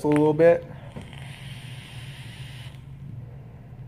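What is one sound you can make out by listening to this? A vape device hisses softly as a young man inhales.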